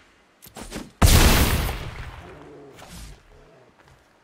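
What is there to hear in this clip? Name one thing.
A game sound effect crashes with a heavy boom.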